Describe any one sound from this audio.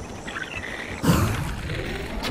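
A creature leaps and lands with a heavy thud.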